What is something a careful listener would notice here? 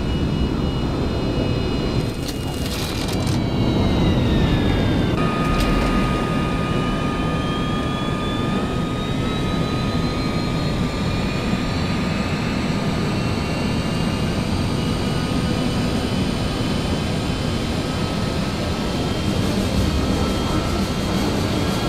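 A jet engine whines and roars steadily, rising in pitch as the aircraft speeds up.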